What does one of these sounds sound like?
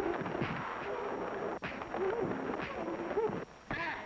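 A large crowd of men shouts and clamours in an echoing hall.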